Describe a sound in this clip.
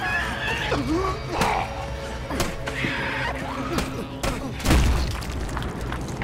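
Punches land with heavy thuds in a fistfight.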